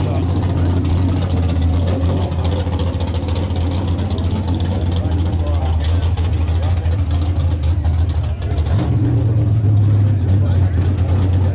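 A car engine idles loudly with a deep, steady rumble.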